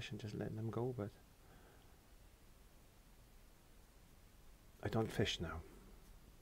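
A brush strokes softly across a canvas.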